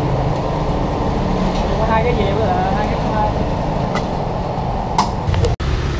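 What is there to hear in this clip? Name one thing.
A gas oven roars steadily.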